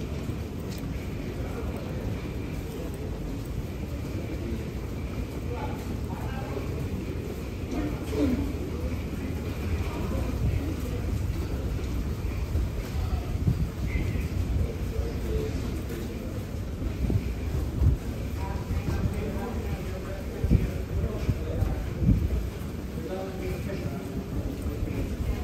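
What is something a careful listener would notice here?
Footsteps of several people walk on a hard floor in a tiled corridor.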